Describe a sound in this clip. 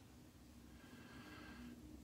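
A razor scrapes across stubble.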